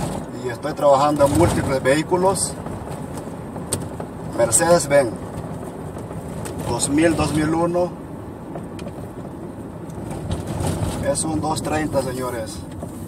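A car's V6 petrol engine hums from inside the cabin while driving.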